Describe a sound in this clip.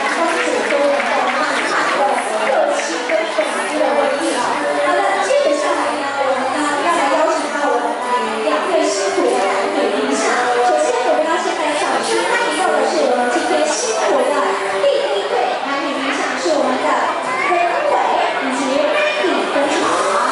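A young woman sings into a microphone through loudspeakers.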